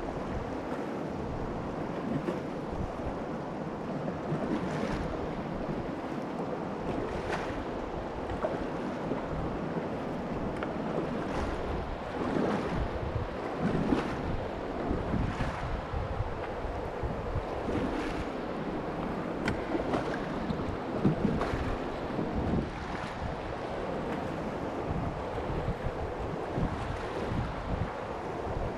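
A paddle splashes into the water in a regular rhythm.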